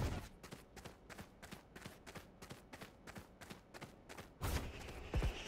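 Footsteps tap quickly and evenly on a hard floor.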